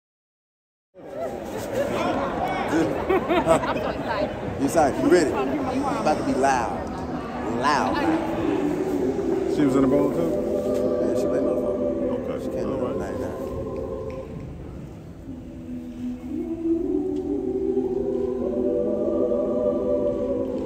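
A choir of young singers sings together in a large echoing hall.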